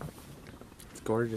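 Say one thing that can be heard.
A young man speaks briefly close by.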